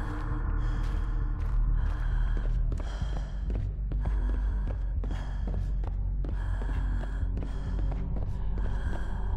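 Footsteps run quickly on a hard concrete floor.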